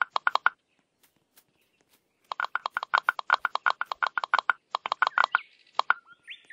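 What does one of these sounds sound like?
Game blocks pop into place with rapid, short chiming clicks.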